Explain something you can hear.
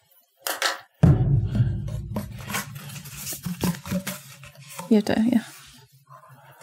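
A cardboard tube rattles and scrapes as a man handles it.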